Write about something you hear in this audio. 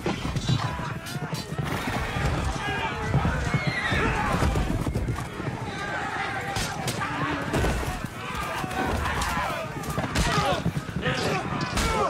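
Horses gallop past and thunder on the ground.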